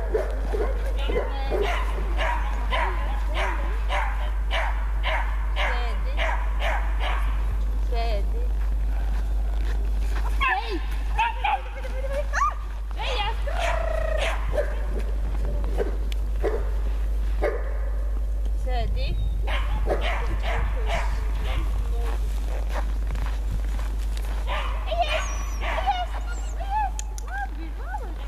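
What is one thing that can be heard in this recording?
A woman talks to a dog with animation outdoors.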